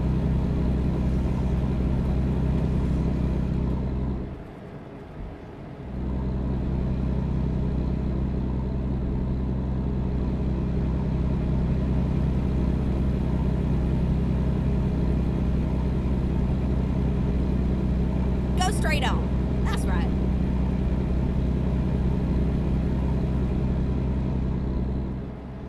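A truck engine drones steadily at a low pitch.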